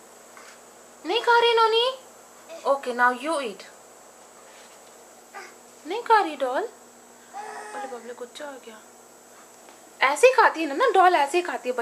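A toddler babbles and squeals in short high-pitched bursts close by.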